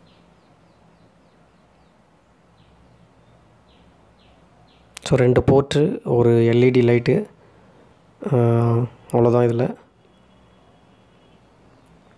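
A small plastic charger taps and clicks softly in hands.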